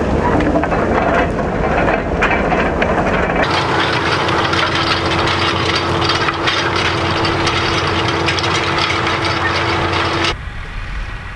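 A disc harrow churns and rattles through soil.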